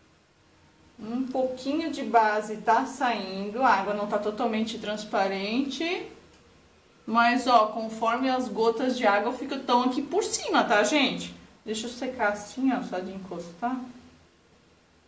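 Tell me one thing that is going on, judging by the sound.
A woman speaks calmly, close to a microphone.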